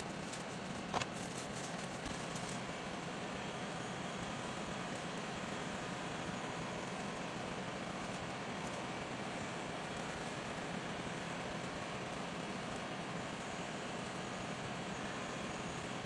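A heat gun blows with a steady whooshing roar.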